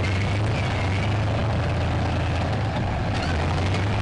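Tank tracks clank over the ground.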